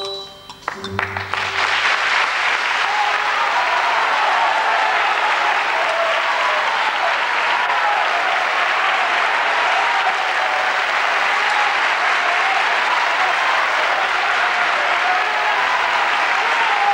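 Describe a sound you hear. A large audience applauds loudly and steadily.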